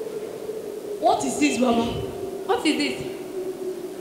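A young woman speaks loudly through a microphone over loudspeakers in an echoing hall.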